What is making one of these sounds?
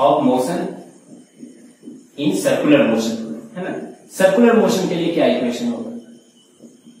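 A young man speaks calmly, as if explaining, close by.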